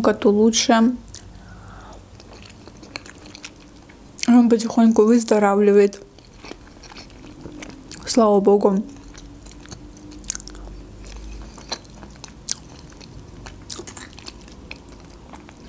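A young woman chews food with soft, moist sounds.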